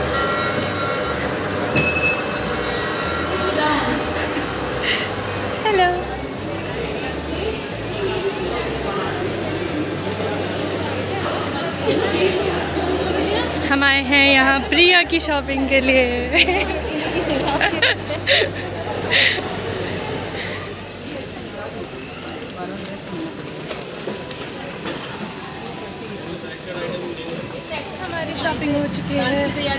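Crowd chatter murmurs through a large echoing hall.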